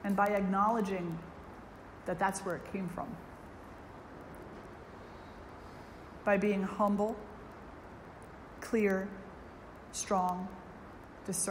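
An elderly woman speaks calmly and slowly into a microphone, with long pauses.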